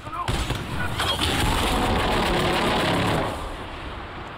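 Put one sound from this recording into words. Explosions boom in a game.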